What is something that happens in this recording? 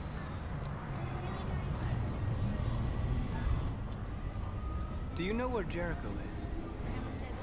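A young man asks a question in a calm voice up close.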